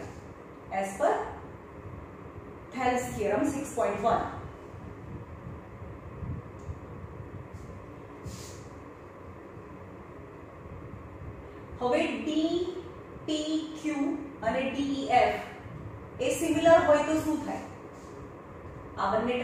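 A young woman explains calmly in a slightly echoing room, with pauses.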